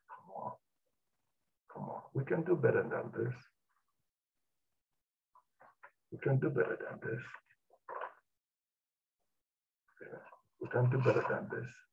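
A middle-aged man speaks calmly into a headset microphone, in bursts with pauses.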